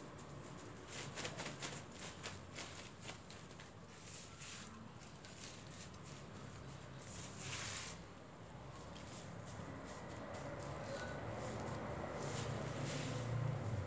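Hands press and scoop loose potting soil into a plastic planting bag, with soft rustling and crinkling.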